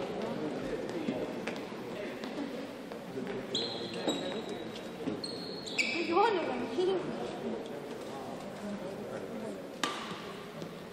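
A crowd murmurs quietly in a large echoing hall.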